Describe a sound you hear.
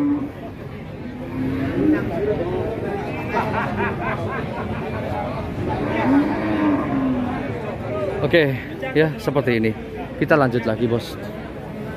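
A crowd of people chatters in the background outdoors.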